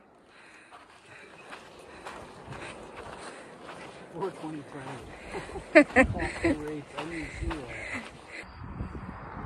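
Footsteps crunch on a dry dirt trail.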